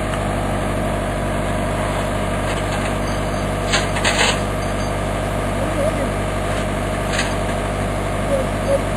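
A diesel excavator engine rumbles steadily close by.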